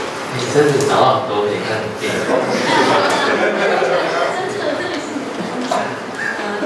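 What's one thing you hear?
A crowd of young people chatters and laughs nearby in a room.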